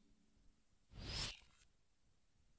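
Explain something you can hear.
A soft whoosh sweeps as a menu changes.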